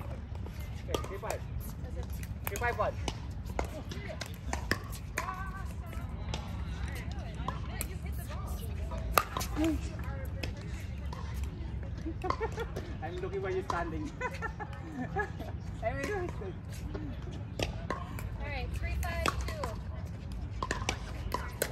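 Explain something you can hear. Men and women talk casually nearby outdoors.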